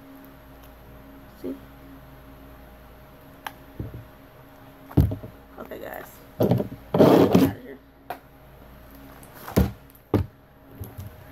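A plastic container lid clicks and knocks.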